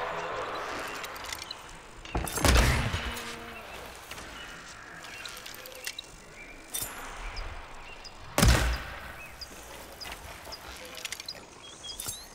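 A bowstring snaps as arrows are loosed.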